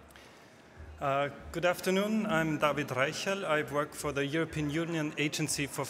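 A second man speaks calmly into a microphone.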